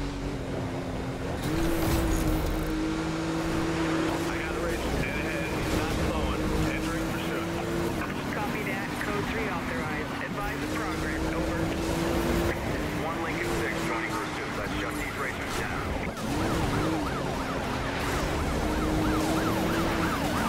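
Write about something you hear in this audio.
A powerful car engine roars at high speed and shifts gears.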